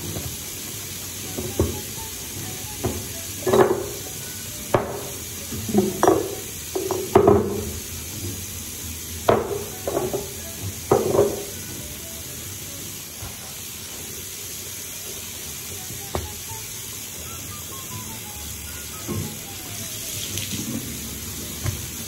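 Water runs steadily from a tap into a basin.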